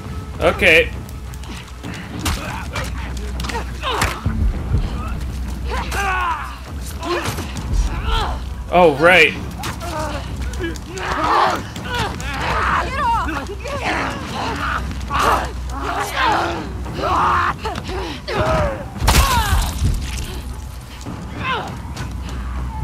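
Infected creatures shriek and growl close by.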